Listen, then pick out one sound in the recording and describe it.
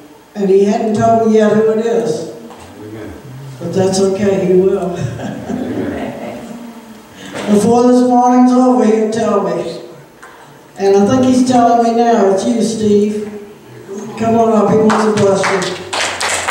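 A woman sings into a microphone, amplified through loudspeakers.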